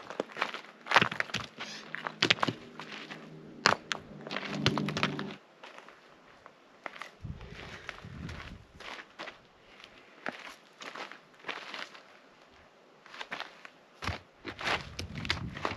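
Rocks clack and knock together as they are stacked.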